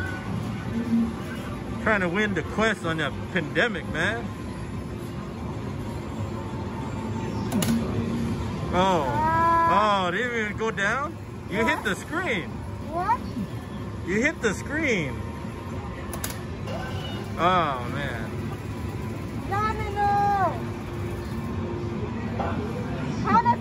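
A busy arcade hall hums with a steady background din of machines.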